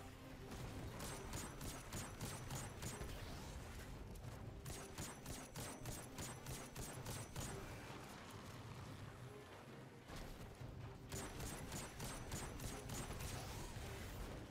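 Rapid gunfire bursts in quick succession.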